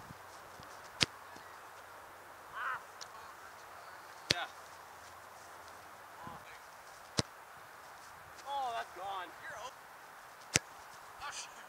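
A ball is kicked hard outdoors several times with sharp thuds.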